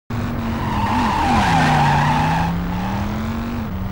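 A car engine roars as a car drives past.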